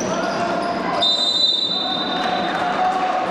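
A referee's whistle blows shrilly.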